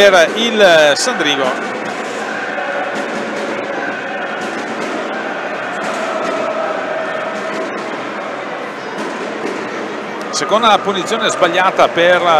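Roller skates roll and scrape across a hard floor.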